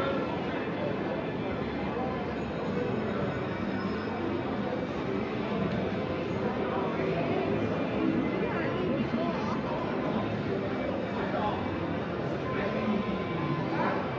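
Slot machines chime and jingle.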